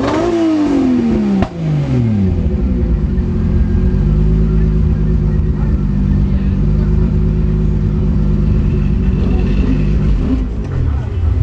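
A race car engine idles loudly with a deep rumble.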